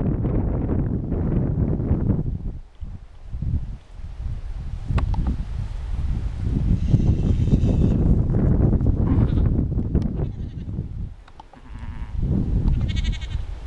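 Wind blows outdoors, rumbling loudly and gusting.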